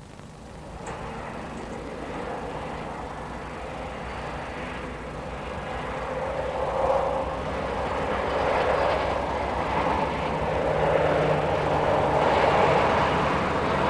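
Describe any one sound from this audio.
A diesel locomotive rumbles by at a distance, pulling a train.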